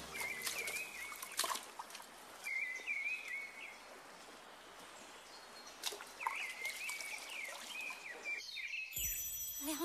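A shallow stream babbles over stones.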